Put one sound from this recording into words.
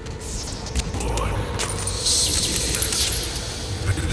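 A revolver clicks as it is handled.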